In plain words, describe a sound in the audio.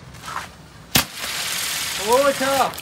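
A ground firework sprays and crackles loudly.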